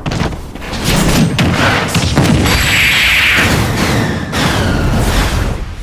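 Explosive blasts burst and boom.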